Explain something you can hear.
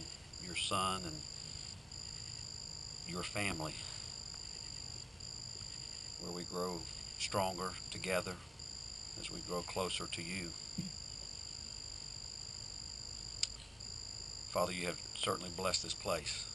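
A man speaks in short bursts through a microphone.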